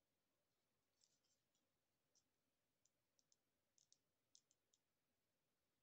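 A paintbrush taps and scrapes lightly against a small plastic figure.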